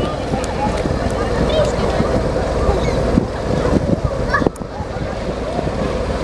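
Water splashes as boys wade in shallow water beside a boat.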